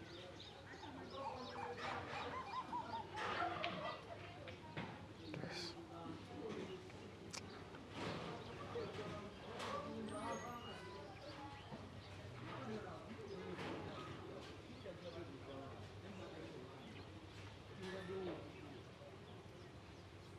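A man talks on the phone close by, speaking calmly.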